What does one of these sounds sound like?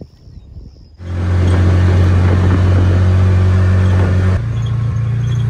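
A utility vehicle engine runs with a steady loud drone.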